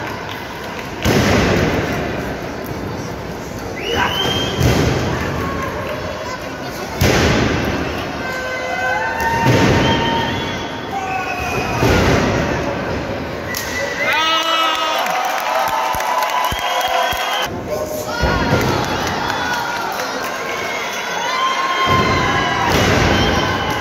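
Wrestlers slam down hard onto a ring mat with loud thuds.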